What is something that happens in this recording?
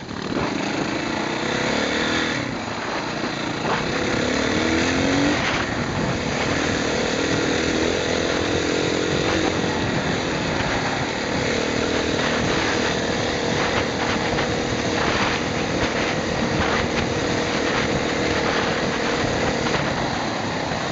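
Wind buffets loudly, as if heard while riding fast outdoors.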